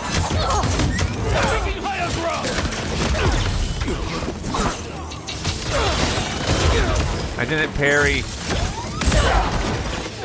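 Blades clang and swish.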